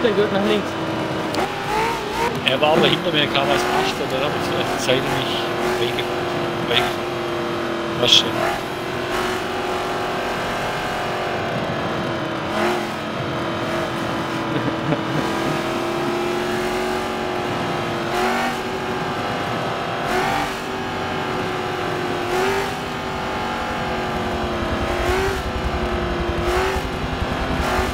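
A race car engine drones steadily at high revs, rising and falling with gear changes.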